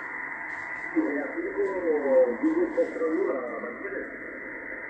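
A man's voice comes faintly through a radio loudspeaker, wavering and distorted.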